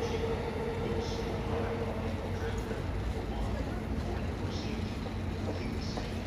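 A train rumbles along the tracks in the distance, slowly fading.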